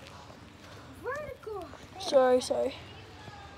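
A young child speaks briefly nearby.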